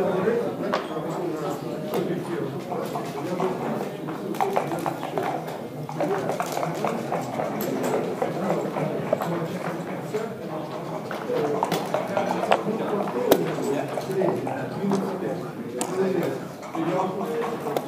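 Plastic game pieces click and clack as they are slid and set down on a wooden board.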